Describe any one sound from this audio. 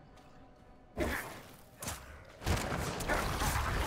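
Weapons clash and creatures snarl in a fight.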